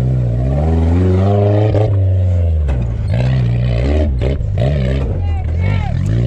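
Tyres crunch and spin on loose dirt.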